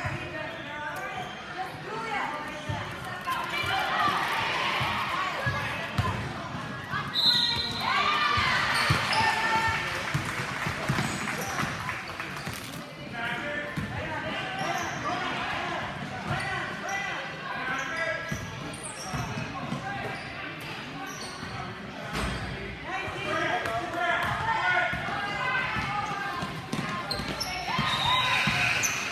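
A crowd of spectators cheers and shouts in a large echoing gym.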